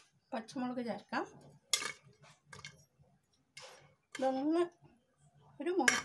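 Chopped vegetables drop into a metal pot.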